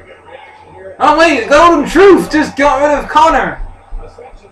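A young man sings out loudly for a few seconds.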